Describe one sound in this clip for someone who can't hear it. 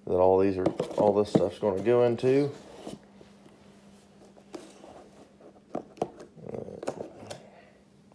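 A cardboard box scrapes and knocks as it is moved.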